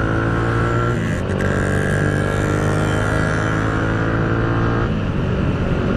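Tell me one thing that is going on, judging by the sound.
Another motorcycle passes close by with a higher engine whine.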